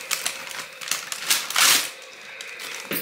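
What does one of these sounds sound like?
Paper rustles as a young child handles a book.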